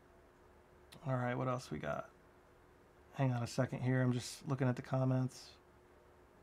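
A man speaks calmly and close by, in short phrases.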